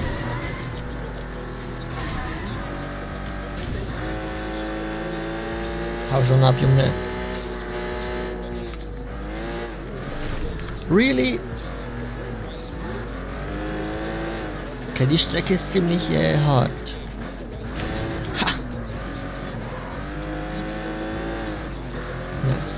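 A car engine roars and revs up and down through gear changes.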